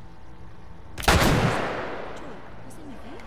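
A pistol shot booms and echoes through a large hall.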